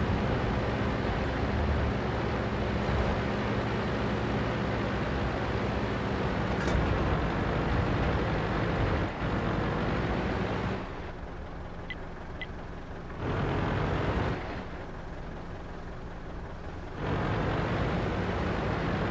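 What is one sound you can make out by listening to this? A heavy tank engine rumbles and roars.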